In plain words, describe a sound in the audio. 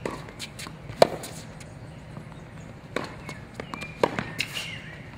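A tennis racket strikes a ball in a rally.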